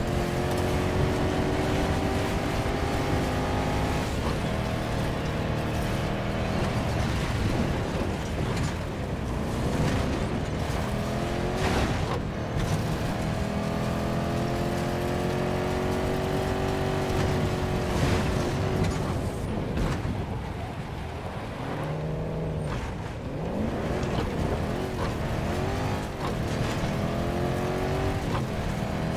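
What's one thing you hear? A tank engine rumbles and whines steadily.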